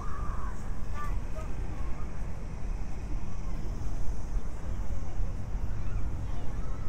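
Wind blows and rumbles across the microphone outdoors.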